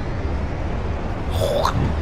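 An off-road buggy engine roars.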